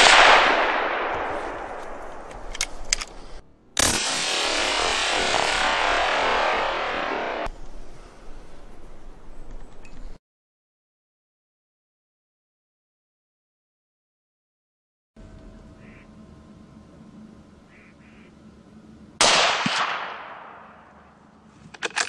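A rifle shot cracks and echoes across open country.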